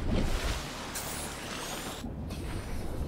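A craft splashes down into water.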